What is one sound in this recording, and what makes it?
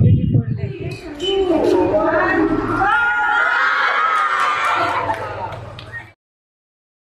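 A group of women call out together in cheerful voices.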